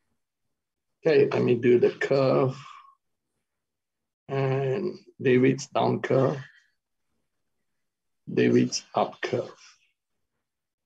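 A middle-aged man speaks calmly in short phrases over an online call.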